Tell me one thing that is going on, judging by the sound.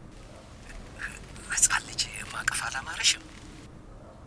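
A woman speaks quietly.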